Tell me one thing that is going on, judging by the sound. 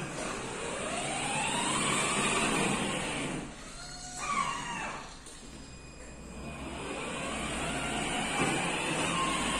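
A small electric motor whines as a toy car drives across a hard floor.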